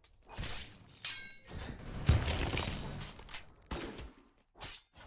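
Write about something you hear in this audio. Sharp impact sounds hit in quick succession.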